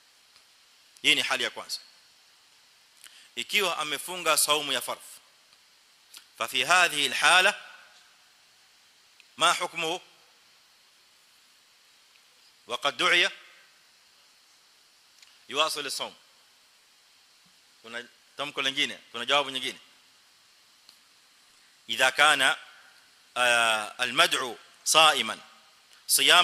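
A man speaks with animation into a microphone, in short bursts with pauses.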